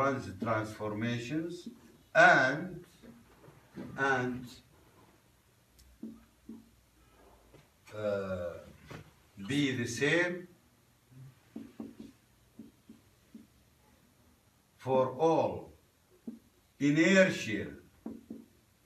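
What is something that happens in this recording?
A man lectures calmly, speaking in short bursts.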